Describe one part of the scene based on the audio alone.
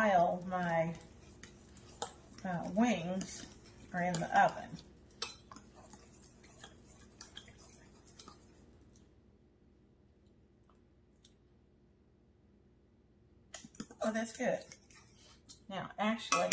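A spoon scrapes and clinks in a metal pot.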